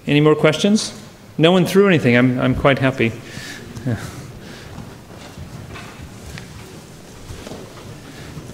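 An audience murmurs quietly.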